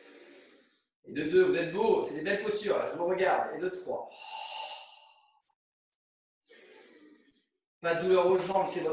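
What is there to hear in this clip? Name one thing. A young man speaks calmly and steadily into a nearby microphone, pausing now and then.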